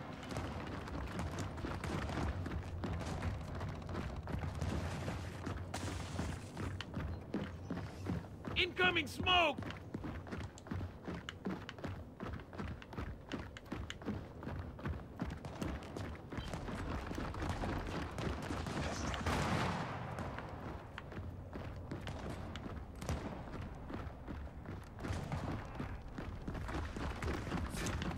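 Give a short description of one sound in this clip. Heavy footsteps thud on stone as a soldier runs.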